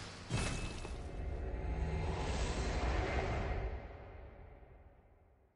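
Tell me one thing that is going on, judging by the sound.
A shimmering magical whoosh swells and then slowly fades.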